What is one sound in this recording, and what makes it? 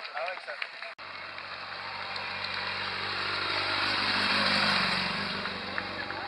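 A motorcycle engine hums as it approaches and passes close by.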